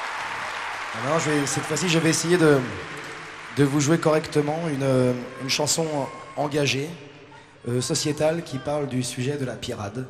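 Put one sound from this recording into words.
A man speaks to the crowd through loudspeakers in a big echoing hall.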